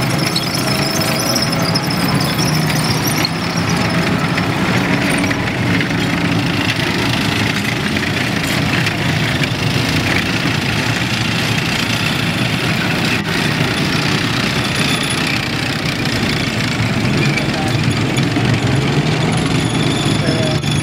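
Tracked vehicles rumble past one after another, their engines roaring.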